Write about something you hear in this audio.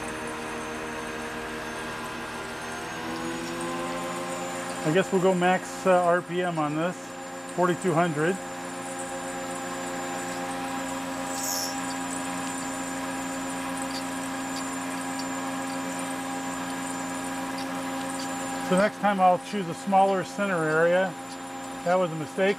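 A milling machine hums steadily, its pitch rising slightly early on.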